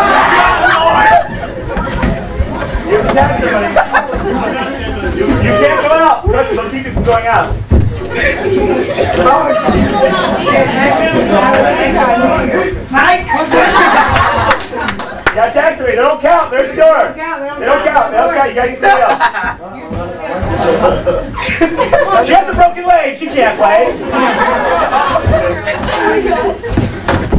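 A crowd of teenagers shouts and laughs excitedly in a room.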